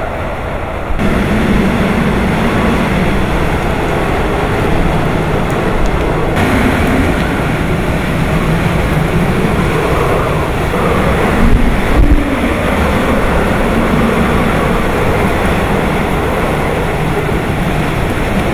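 Trees rustle and thrash in the wind.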